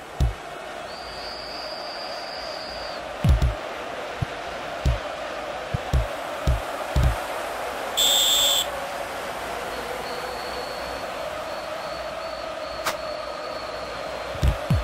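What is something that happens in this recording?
A football is kicked with dull thuds, again and again.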